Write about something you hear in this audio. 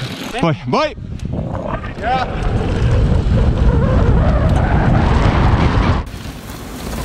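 Bike tyres rumble and crunch over a dirt trail.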